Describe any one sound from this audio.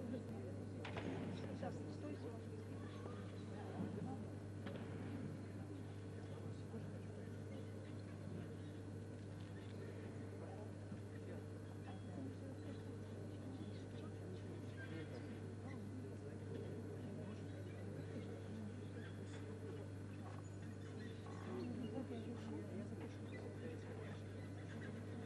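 A gymnast's hands slap onto a bar.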